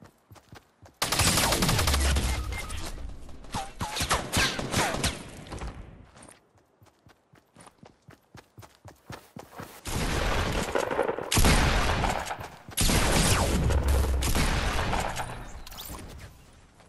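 Gunshots fire in rapid bursts and echo.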